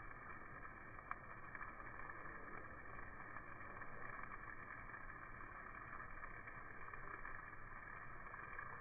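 Meat sizzles and crackles steadily over hot coals.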